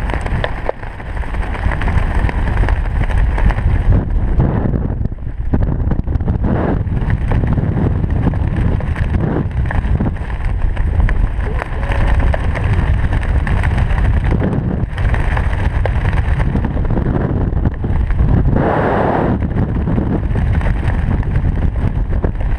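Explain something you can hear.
Strong wind roars and buffets loudly.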